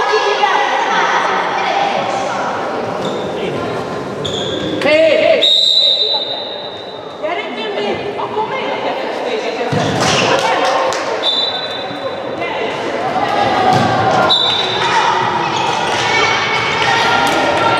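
Girls shout and call out to each other in a large echoing hall.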